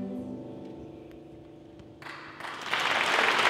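A keyboard's final chord rings out and slowly fades.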